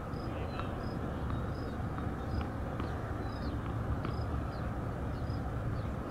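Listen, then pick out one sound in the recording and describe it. A tennis ball bounces on a hard court several times.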